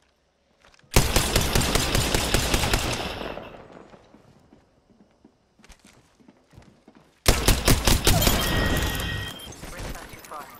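Rapid gunfire rattles loudly in short bursts.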